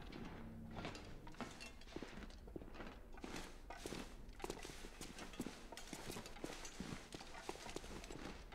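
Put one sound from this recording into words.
Footsteps climb a flight of stairs at a steady pace.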